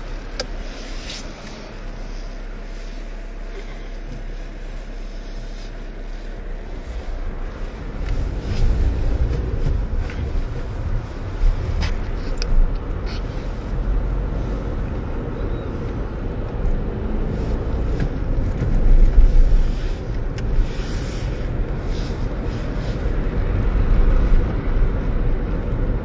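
A car engine hums steadily from inside the car, growing louder as it speeds up.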